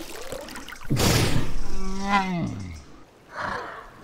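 A large creature lets out a deep, groaning roar.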